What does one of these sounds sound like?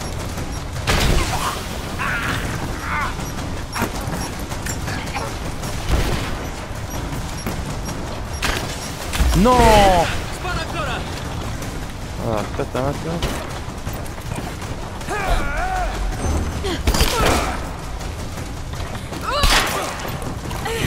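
Gunshots and explosions bang loudly.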